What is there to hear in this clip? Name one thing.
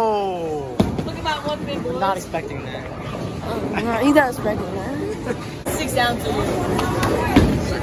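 A teenage boy talks close by.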